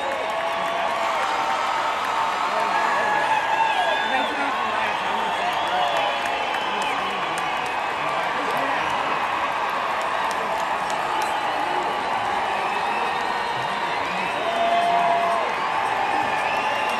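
People in a crowd whistle shrilly.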